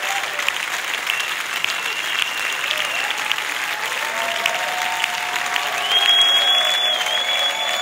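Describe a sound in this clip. Violins hold long, high notes.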